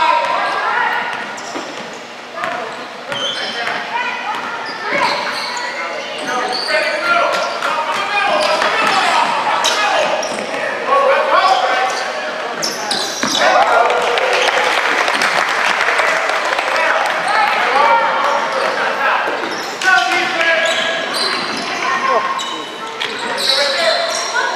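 Children shout and call out across a large echoing gym.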